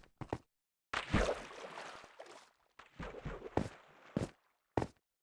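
Water splashes as someone wades and swims.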